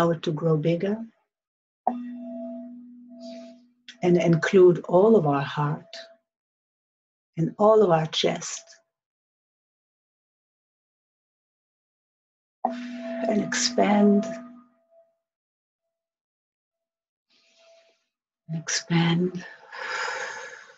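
A woman sings softly in a calm, chanting voice close by.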